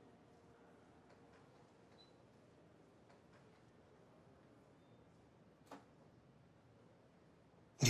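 Footsteps tap across a hard floor indoors.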